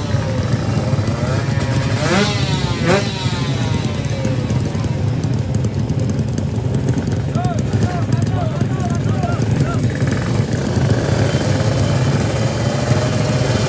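Motorcycle engines rev loudly nearby.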